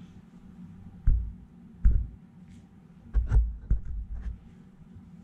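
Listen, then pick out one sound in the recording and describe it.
A small device bumps softly in a gloved hand.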